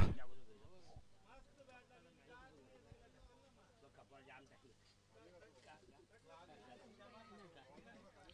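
Men talk faintly at a distance outdoors.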